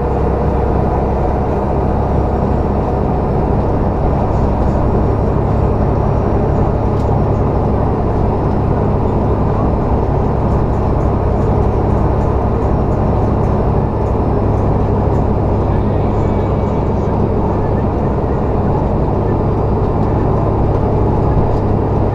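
Tyres hum on a wet road.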